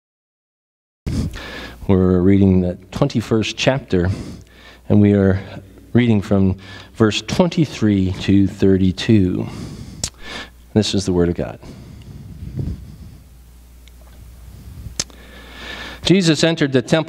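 An older man speaks calmly into a microphone in an echoing hall.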